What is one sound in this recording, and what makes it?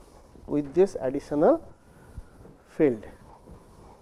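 A board eraser rubs across a board.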